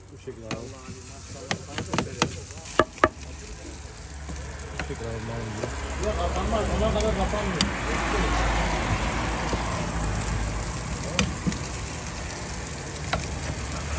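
A knife slices through meat.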